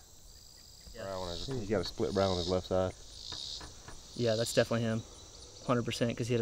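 A man speaks calmly and quietly, close by.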